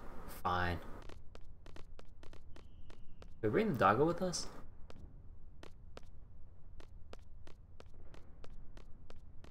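Footsteps tap steadily on a stone pavement.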